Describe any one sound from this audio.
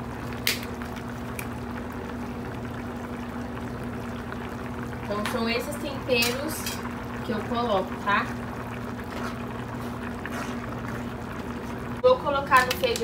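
Water bubbles and simmers in pots.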